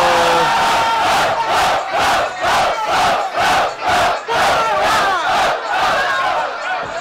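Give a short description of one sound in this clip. A crowd chants in rhythm.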